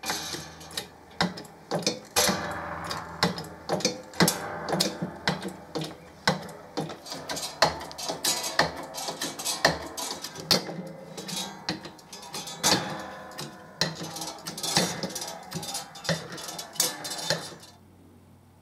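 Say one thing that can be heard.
A metal broach scrapes and clicks as it cuts through metal.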